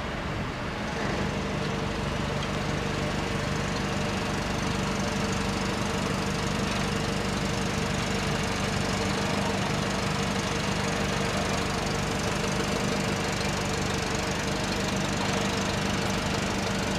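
A forklift engine idles and hums steadily.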